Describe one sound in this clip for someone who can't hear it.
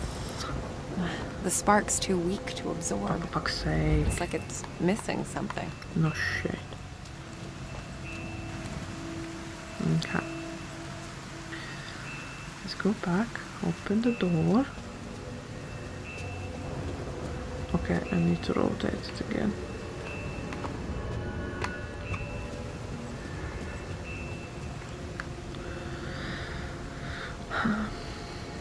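A young woman talks casually into a nearby microphone, in short bursts.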